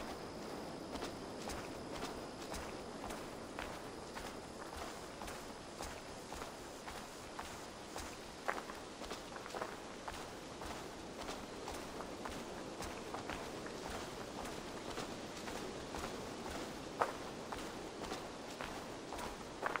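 Footsteps crunch on a dirt path at a steady walking pace.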